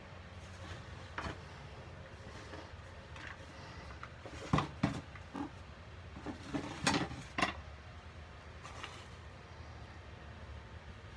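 Gloved hands knead and squeeze a powdery mixture in a metal bowl.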